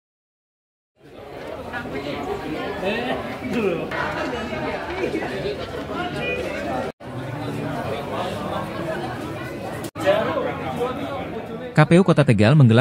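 Several men and women chatter in a busy, echoing room.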